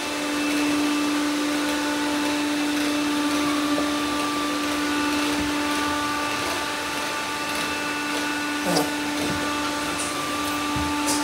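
Several robot vacuums hum and whir steadily.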